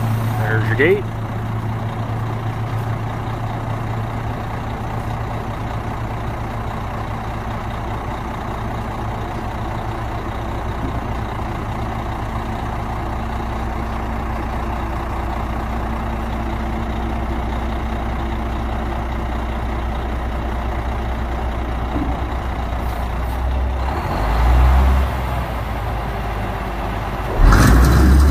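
A diesel dump truck idles.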